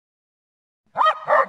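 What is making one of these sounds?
A dog barks loudly.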